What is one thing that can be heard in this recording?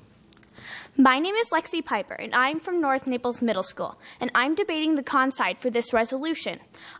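A young woman speaks clearly into a microphone in a large room.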